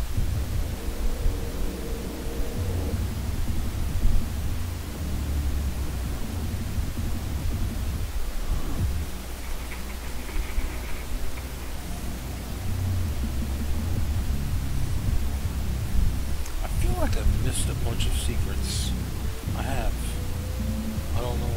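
A middle-aged man talks casually into a close microphone.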